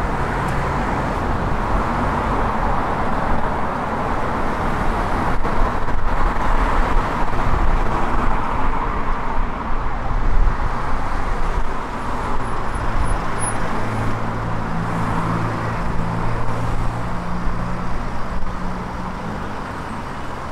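Footsteps tap on a pavement close by.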